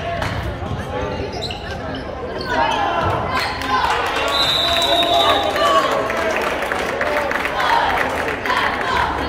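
Young players and spectators shout and call out in a large echoing gym.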